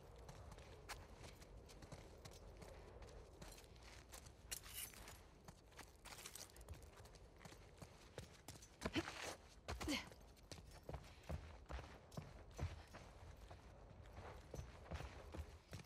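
Footsteps tread on a hard floor indoors.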